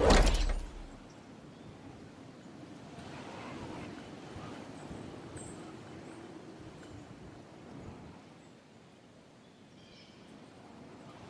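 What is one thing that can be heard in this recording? Wind rustles softly while gliding down.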